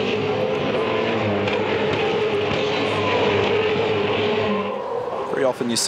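A race car engine roars loudly close by.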